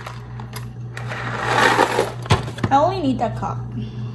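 Dry pasta rattles as it pours into a metal pot.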